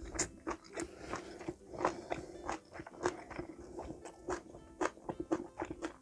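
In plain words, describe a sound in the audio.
A woman chews and slurps food noisily close to a microphone.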